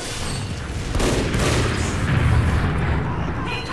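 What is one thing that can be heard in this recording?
Game explosions boom with loud blasts.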